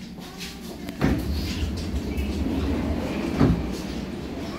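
Metal clunks and knocks sound through the carriage.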